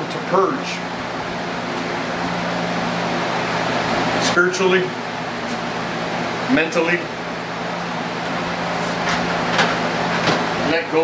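A man speaks briefly and casually, close by.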